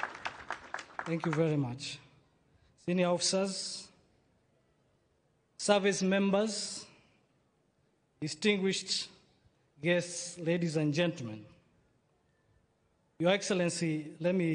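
A man speaks formally through a loudspeaker, in bursts with pauses.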